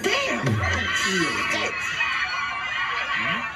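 A woman screams frantically.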